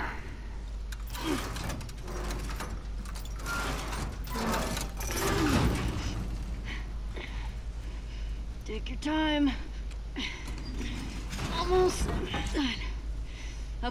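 A metal chain rattles as it is pulled.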